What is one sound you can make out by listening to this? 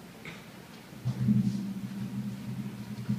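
A concert band begins to play a slow piece, with low brass swelling in a large hall.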